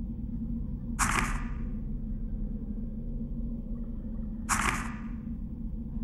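A short whooshing chime sounds twice.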